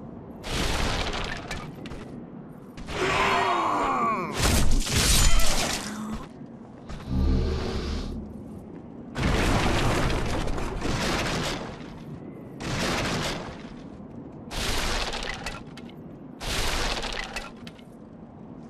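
Sword blows swish and clash in loud, sudden bursts.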